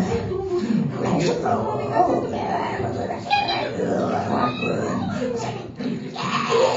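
An older man sings into a microphone.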